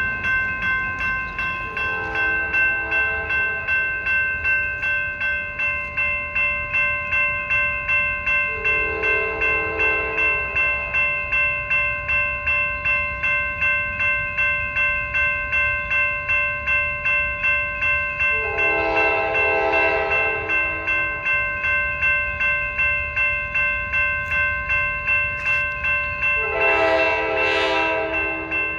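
A locomotive bell rings steadily and quickly.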